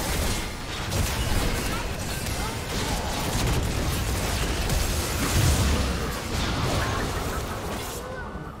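Magic spells whoosh, crackle and explode in a fast clash of fighters.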